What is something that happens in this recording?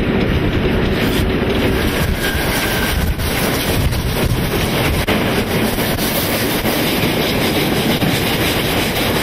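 Rushing wind roars past close by.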